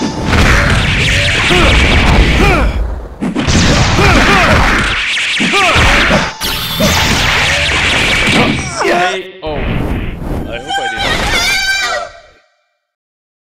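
Punches, blasts and energy beams crash and whoosh in a video game fight.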